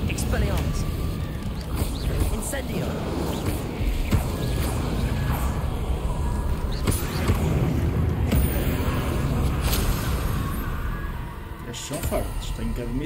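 Spell blasts burst with loud bangs.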